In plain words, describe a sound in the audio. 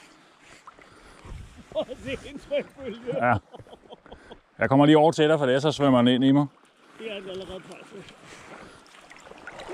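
A fishing reel winds with a soft clicking whir.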